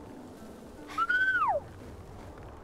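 A large creature lets out a high, rising then falling cry.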